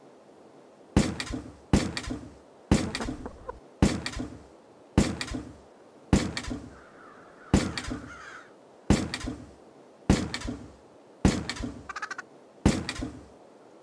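A trampoline springs with repeated bouncy thumps.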